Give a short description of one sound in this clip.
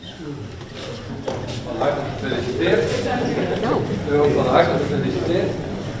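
An elderly woman talks cheerfully nearby.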